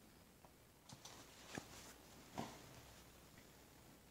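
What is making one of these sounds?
Cloth fabric rustles as a hand handles it.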